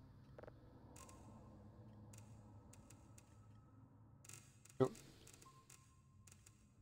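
An electronic control panel beeps and chirps with short tones.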